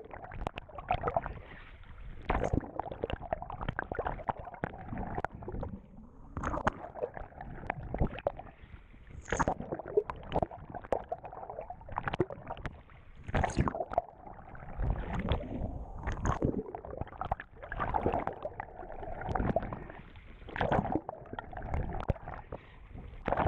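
Water splashes and gurgles close by as a swimmer kicks and strokes, heard from just under the surface.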